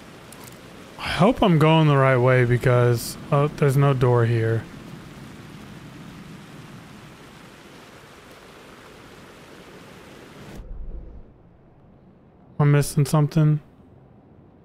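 A man talks with animation into a microphone, close by.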